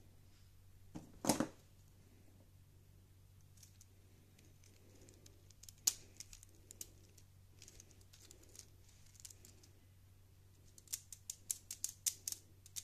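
Plastic toy bricks click and clatter as hands handle them.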